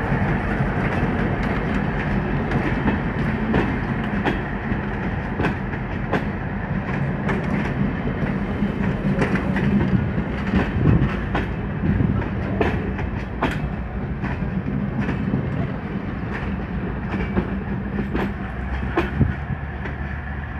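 A passenger train rumbles steadily past close by.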